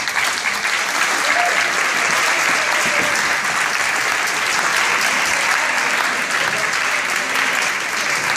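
A crowd cheers and chatters.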